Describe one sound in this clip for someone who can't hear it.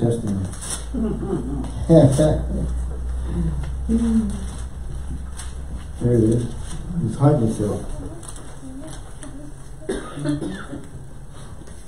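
A middle-aged man speaks calmly into a microphone, reading out and preaching in pauses.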